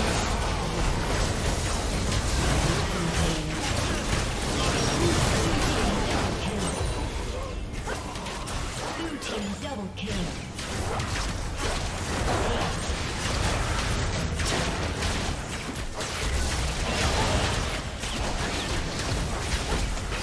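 Spell effects crackle and explode in quick bursts.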